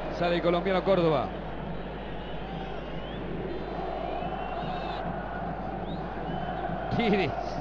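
A large stadium crowd roars steadily in the distance.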